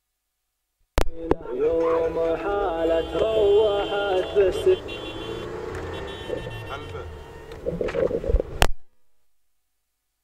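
Car engines drone as cars drive alongside.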